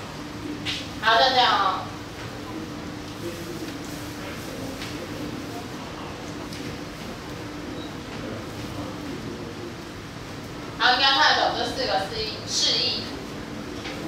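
A woman speaks with animation to a room.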